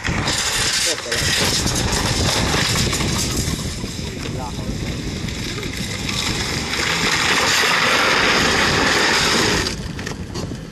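A damaged bumper scrapes and rattles against the road.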